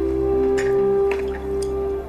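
Liquor splashes as it is poured into a small cup.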